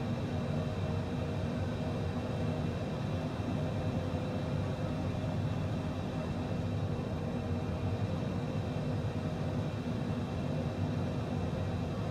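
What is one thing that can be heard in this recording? Jet engines hum and roar steadily.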